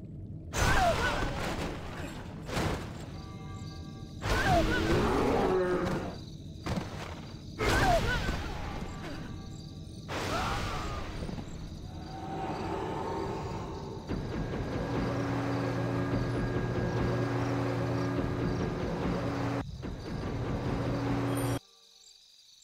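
Weapons clash and spells crackle in a busy battle.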